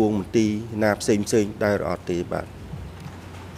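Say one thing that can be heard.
A man speaks calmly into a microphone.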